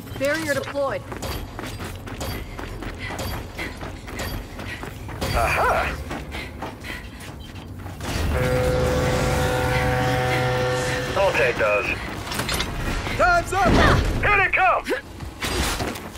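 Footsteps clatter quickly on a metal walkway.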